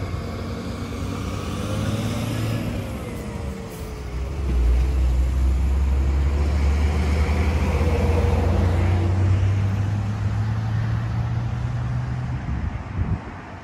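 A heavy truck engine rumbles and pulls away.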